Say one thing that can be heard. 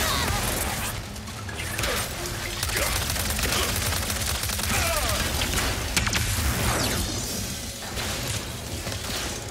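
Energy weapons fire and crackle in rapid bursts.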